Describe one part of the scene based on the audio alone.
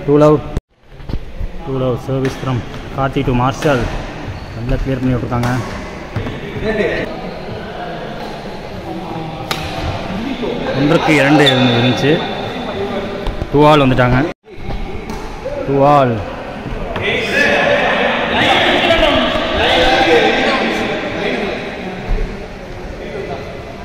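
Badminton rackets strike a shuttlecock with sharp pops.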